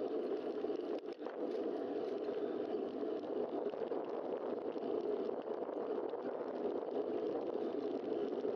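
Wind rushes steadily past a cyclist riding fast.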